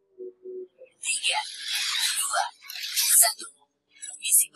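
A spacecraft whooshes past with a rushing roar.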